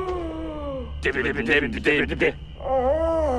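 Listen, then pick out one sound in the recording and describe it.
A second man answers with animation.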